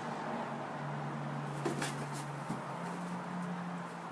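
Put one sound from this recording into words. A cardboard box scrapes and knocks as a cat jumps out of it.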